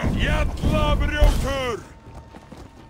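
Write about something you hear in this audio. A sword strikes an armoured fighter with a heavy clang.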